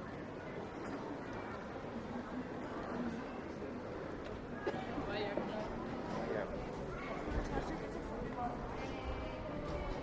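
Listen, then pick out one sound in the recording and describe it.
A busy pedestrian street hums with the murmur of passers-by outdoors.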